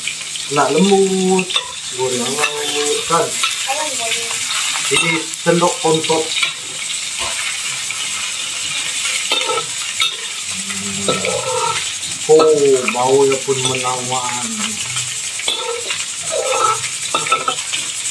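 A metal spatula scrapes against a pan.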